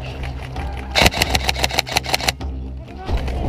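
Rifles fire rapid bursts of shots.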